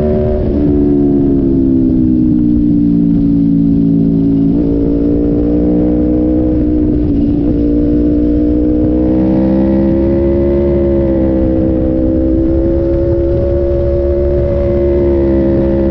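A motorcycle engine drones steadily, its pitch rising and falling with gear changes.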